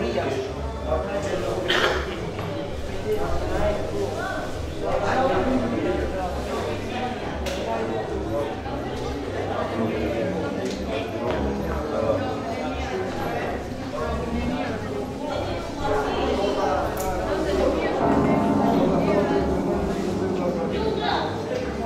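A crowd of men and women chatter all around in an echoing hall.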